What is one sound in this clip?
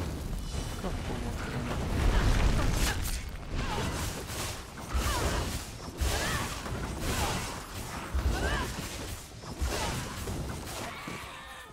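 Magic blasts crackle and burst in quick succession during a fight.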